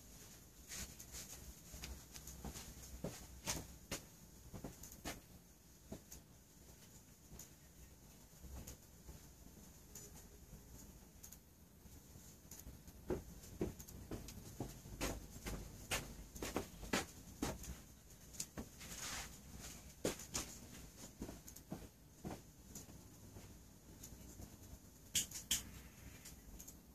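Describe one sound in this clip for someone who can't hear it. A candle wick crackles and pops softly as it burns.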